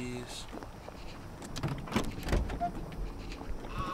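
A car boot lid clicks open.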